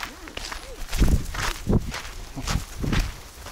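A pigeon flaps its wings as it takes off.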